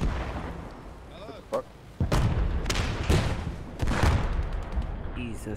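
Explosions boom nearby with a rumbling echo.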